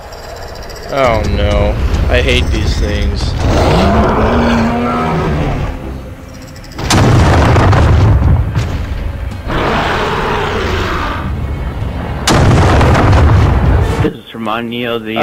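A huge creature roars and growls loudly, echoing in a cavern.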